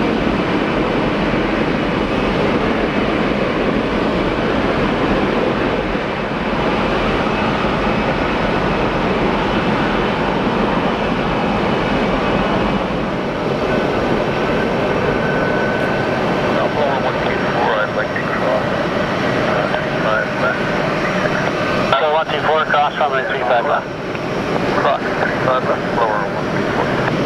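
Jet engines of a large aircraft roar loudly and steadily nearby.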